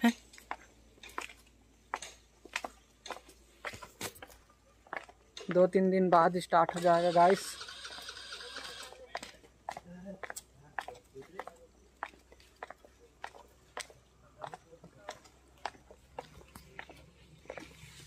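Footsteps fall on stone steps.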